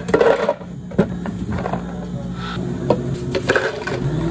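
Hard plastic cups knock against each other and a counter.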